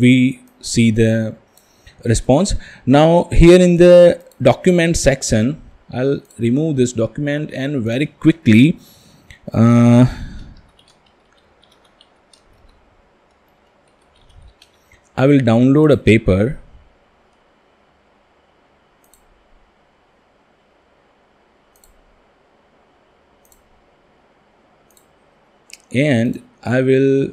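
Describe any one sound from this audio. A man talks calmly and close to a microphone, in bursts with long pauses.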